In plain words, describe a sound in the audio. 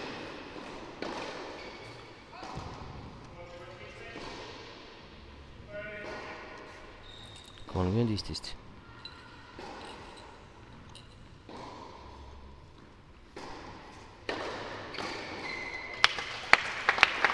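Tennis balls are struck with rackets and bounce on a hard court.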